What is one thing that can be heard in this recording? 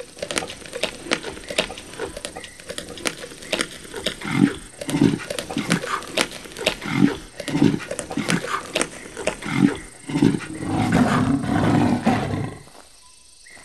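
Lions tear and chew at meat with loud crunching bites.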